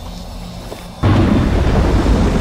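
Water gushes and roars in a heavy rush.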